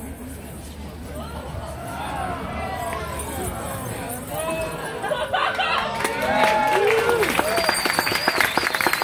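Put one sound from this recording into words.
A crowd cheers and whoops loudly.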